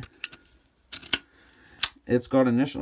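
A metal lighter lid clicks open.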